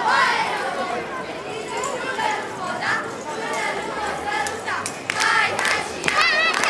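A choir of young girls sings a folk song outdoors over loudspeakers.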